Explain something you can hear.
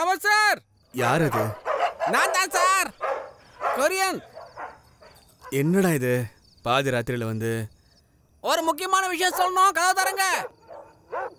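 A man wails and cries out loudly.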